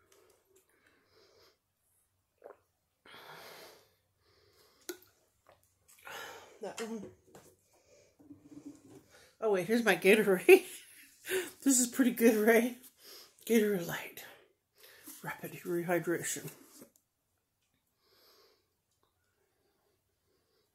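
A woman gulps a drink from a bottle.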